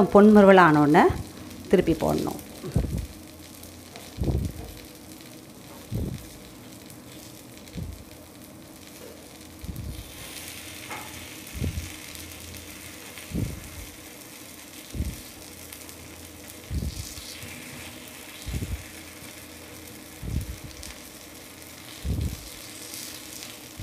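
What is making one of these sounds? Batter sizzles gently in a hot pan.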